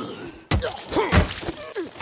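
A wooden bat strikes a body with a heavy thud.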